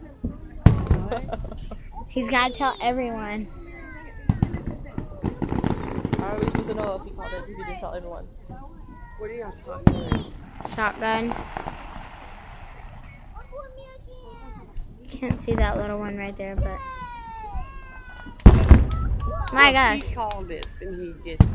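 Fireworks bang loudly overhead, one after another.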